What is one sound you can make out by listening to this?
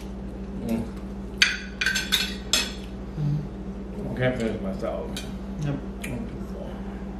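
Forks and knives clink against plates.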